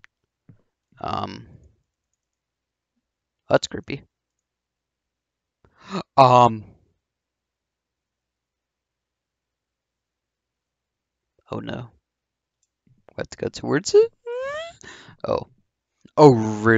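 A young man talks into a microphone in short bursts, sometimes exclaiming in surprise.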